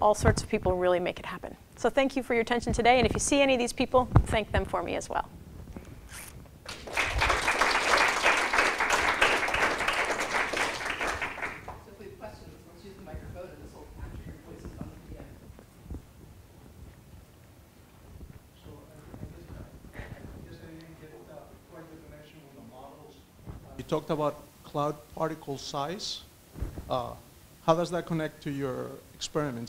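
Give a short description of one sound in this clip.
A young woman speaks through a microphone in a large room.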